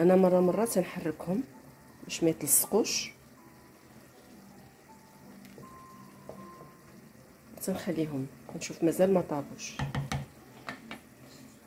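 Water bubbles at a rolling boil in a pot.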